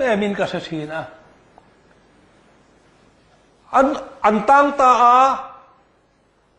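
A middle-aged man preaches with animation into a microphone, pausing between phrases.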